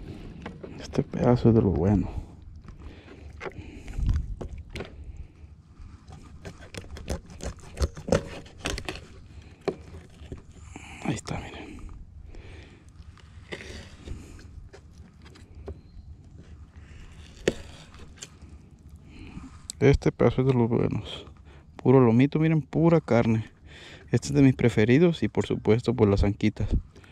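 A man speaks calmly close up.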